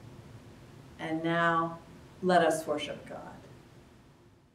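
A woman speaks warmly and clearly in a reverberant room.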